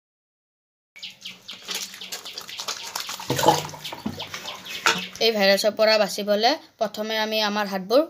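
Water splashes in a plastic mug.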